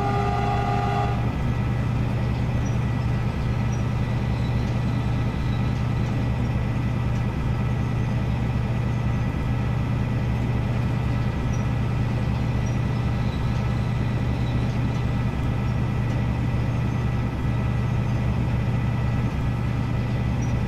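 A locomotive engine drones steadily.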